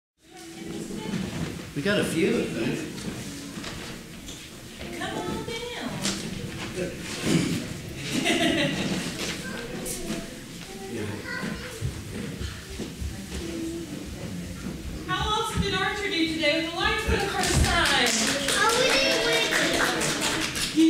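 A woman speaks clearly to a gathering in an echoing hall.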